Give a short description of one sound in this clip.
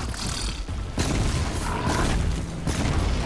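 A loud fiery explosion bursts and roars.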